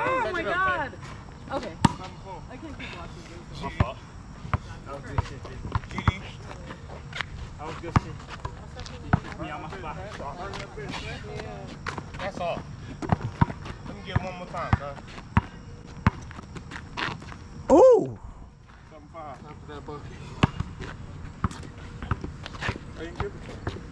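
Young men talk and call out to each other outdoors.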